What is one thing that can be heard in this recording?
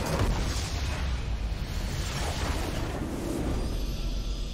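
Game combat effects clash and crackle loudly.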